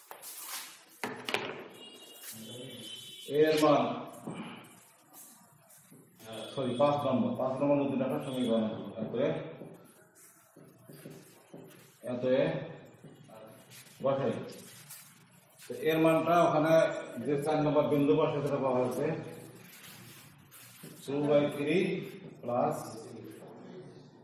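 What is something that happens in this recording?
An elderly man speaks calmly into a nearby microphone, explaining in a lecturing tone.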